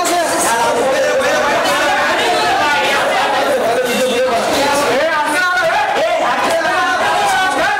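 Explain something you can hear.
A crowd of men and women talk and call out loudly close by.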